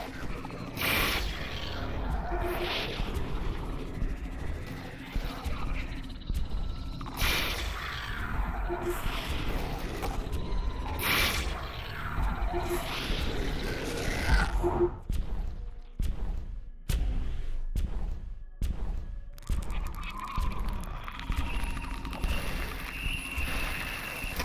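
Monsters roar and growl.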